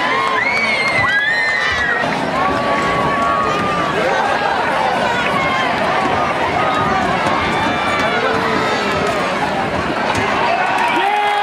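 Young men shout and call out across an open field.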